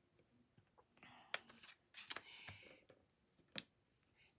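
Paper slides and taps on a desk mat.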